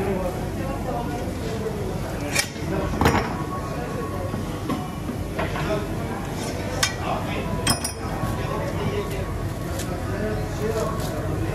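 A metal spit clanks and scrapes as it is handled.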